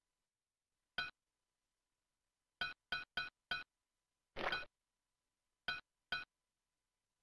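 Bright chiming pings sound quickly one after another.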